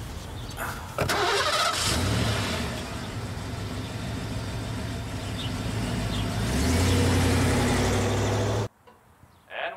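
A car engine starts and idles with a low hum.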